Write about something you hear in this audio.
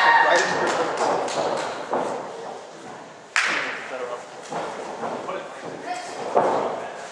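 Wrestlers' feet thump on a wrestling ring's canvas.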